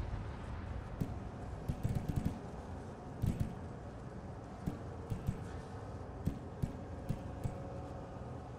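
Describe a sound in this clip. Soft interface clicks tick one by one as selections change.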